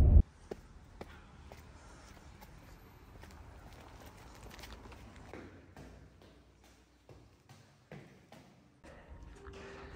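Footsteps tap on hard stone steps.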